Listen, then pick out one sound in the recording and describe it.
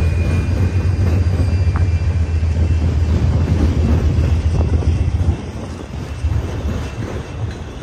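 A long freight train rumbles steadily past on the tracks.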